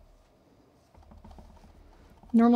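A stamp presses onto an ink pad with soft thuds.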